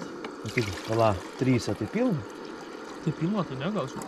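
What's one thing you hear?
Water pours from a plastic bottle into a metal pot.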